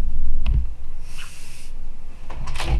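A sheet of paper slides across a table.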